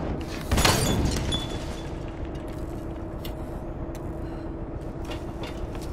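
Flames crackle and burn.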